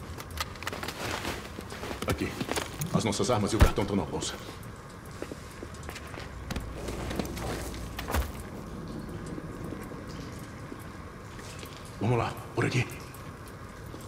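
Fire crackles softly in furnaces.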